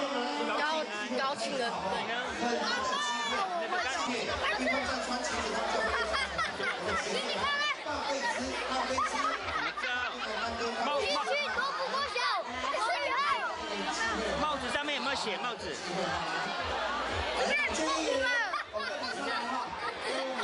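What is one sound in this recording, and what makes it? Many children chatter and shout all around in a noisy crowd.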